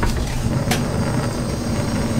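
A gas flame hisses softly.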